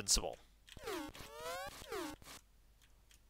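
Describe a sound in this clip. Retro video game bleeps sweep downward and upward in quick bursts.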